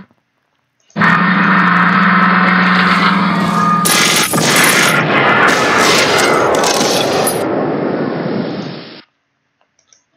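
Tank guns fire in a battle.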